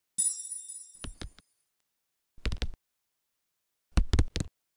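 Soft electronic thumps pop in quick bursts.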